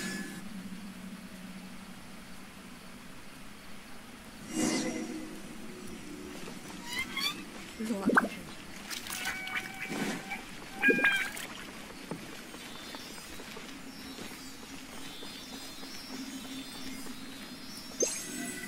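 A magical chime shimmers and rings.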